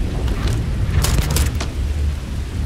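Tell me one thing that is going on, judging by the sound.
A rifle fires two loud shots close by.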